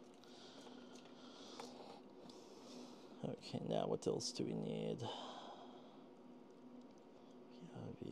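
Cables rustle and click as hands plug them into a small board.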